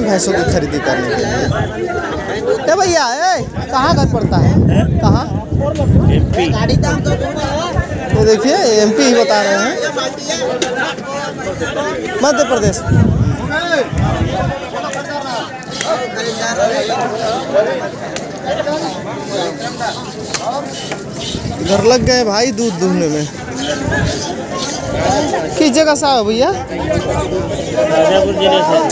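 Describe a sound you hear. Several men talk at once nearby, outdoors.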